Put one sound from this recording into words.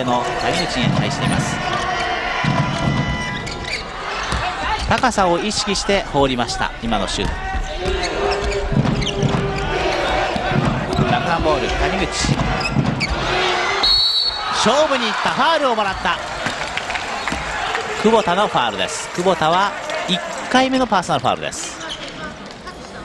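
A crowd cheers and murmurs in a large echoing arena.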